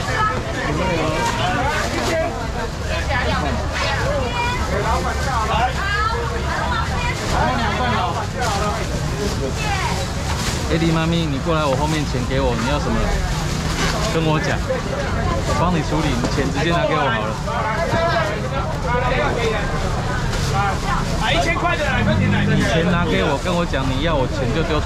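Plastic bags rustle as they are handled.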